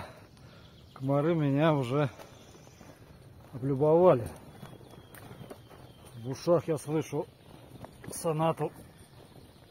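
A middle-aged man talks with animation close by, in short bursts.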